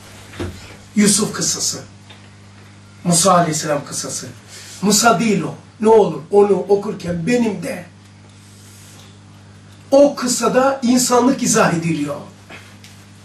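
An elderly man speaks with animation into a microphone, in pauses.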